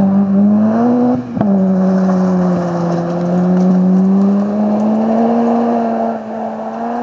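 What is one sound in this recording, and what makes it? A rally car engine roars as the car speeds away down a gravel road, shifting gears.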